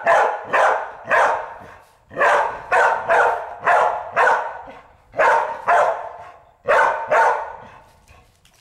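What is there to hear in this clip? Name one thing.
A dog barks loudly and repeatedly close by.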